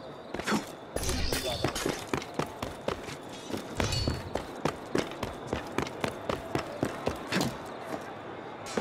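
Quick footsteps patter across roof tiles.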